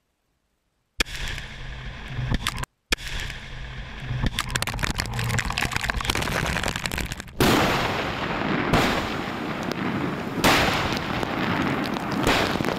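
Earth and debris rain down with a rumbling roar.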